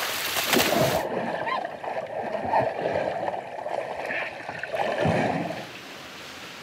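Bubbles gurgle and rumble underwater.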